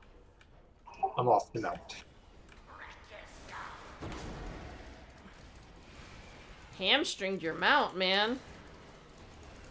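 Magic spells burst and crackle during a fight.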